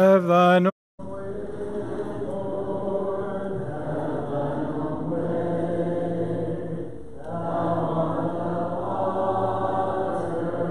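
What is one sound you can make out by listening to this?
A congregation sings a hymn together.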